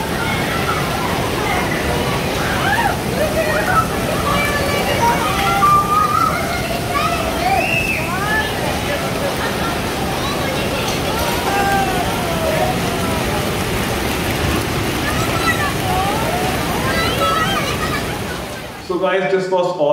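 Hail patters and rattles down heavily outdoors.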